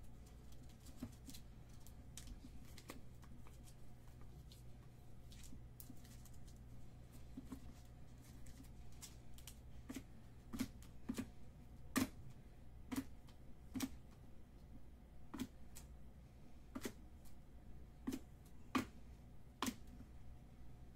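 Trading cards tap and click as they are shuffled and laid down on a table.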